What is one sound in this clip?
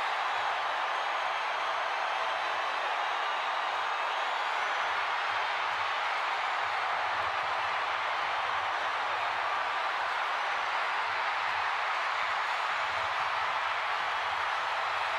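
A large crowd cheers and roars steadily in a big echoing arena.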